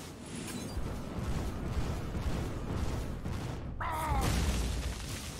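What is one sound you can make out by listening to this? Fiery game sound effects rumble and whoosh.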